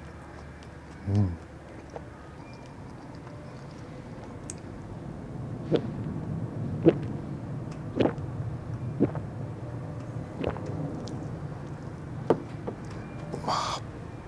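A man murmurs briefly and calmly, close to a microphone.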